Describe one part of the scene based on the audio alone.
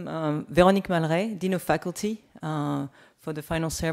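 A woman speaks with a smile through a microphone.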